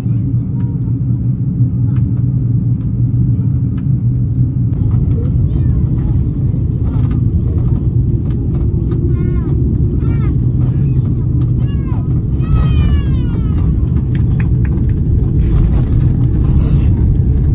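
A jet engine roars steadily inside an airplane cabin.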